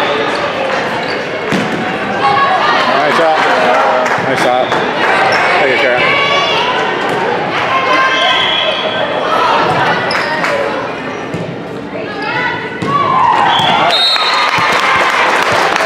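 Teenage girls shout and call out to each other in an echoing gym.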